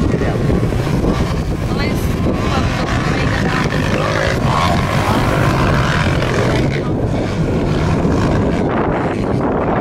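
Dirt bike engines whine and rev in the distance.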